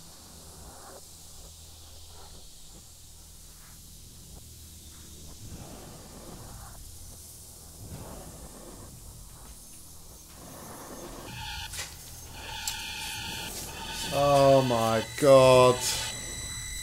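A young man talks through a headset microphone.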